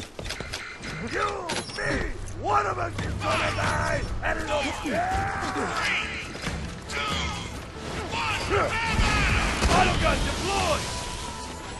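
Creatures shriek in high, warbling cries.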